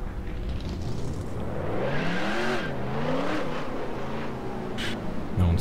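A race car engine revs up, its pitch rising and falling as it gathers speed.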